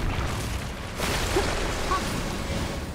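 A heavy burst of crashing debris explodes.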